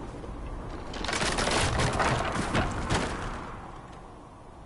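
A wooden structure cracks and crashes down in a loud roar.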